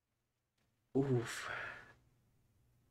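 A middle-aged man speaks briefly and casually close to a microphone.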